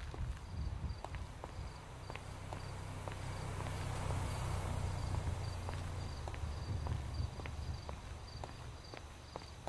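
A car engine hums as it drives by.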